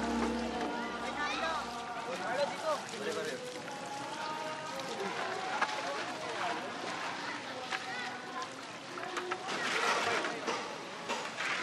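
Young boys talk and call out nearby, outdoors.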